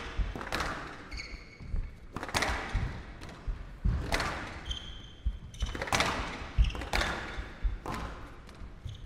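A squash ball is struck hard and smacks off the walls with a ringing echo.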